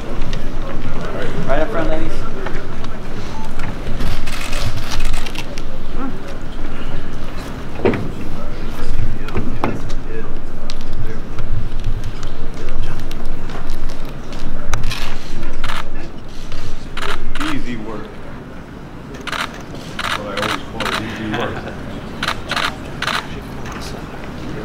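A man speaks loudly over a public address in a large echoing hall.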